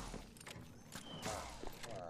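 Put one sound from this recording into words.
Arrows whoosh past.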